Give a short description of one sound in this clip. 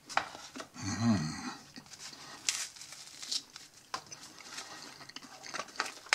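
Crusty bread tears apart between fingers.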